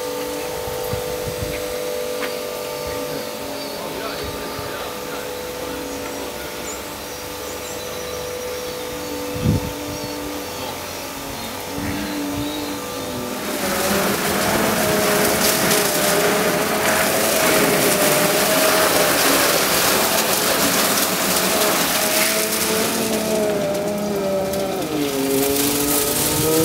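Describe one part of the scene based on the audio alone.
A motor hums with a steady, wavering whine.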